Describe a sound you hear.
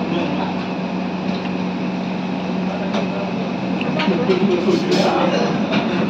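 Metal plates clink.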